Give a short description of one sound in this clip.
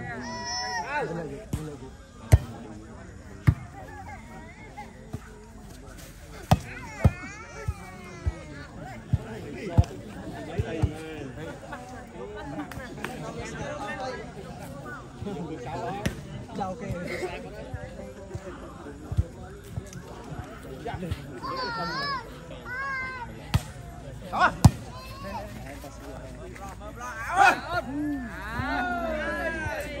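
Young men shout during play.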